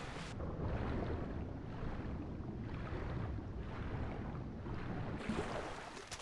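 Water churns and gurgles in a low, muffled rush.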